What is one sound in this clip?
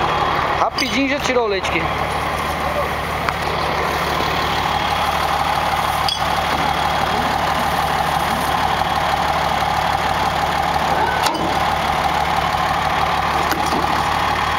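A motor pump hums steadily close by.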